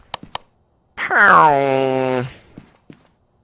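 A man speaks with a drawn-out, wailing voice close by.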